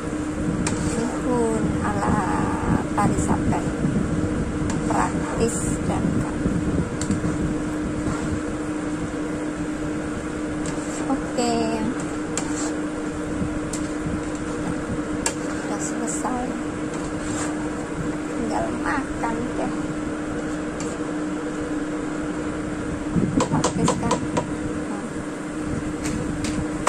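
Noodles sizzle in a hot pan.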